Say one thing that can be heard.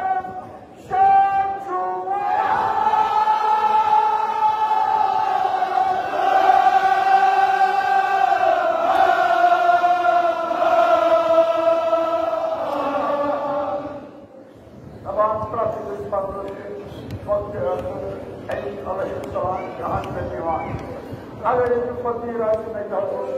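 A large crowd of men chants loudly together in a rhythmic lament.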